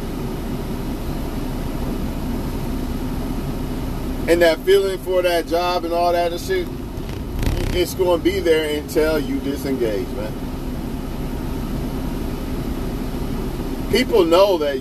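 A vehicle engine hums steadily inside a cab.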